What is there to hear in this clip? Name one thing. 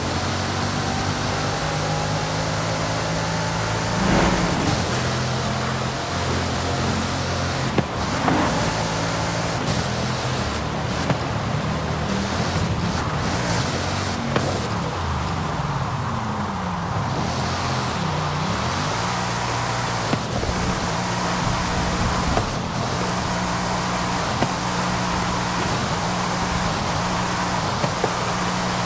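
Tyres hiss over a wet road.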